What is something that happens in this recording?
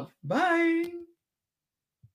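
A young woman makes a drawn-out, rising vocal sound close to a microphone.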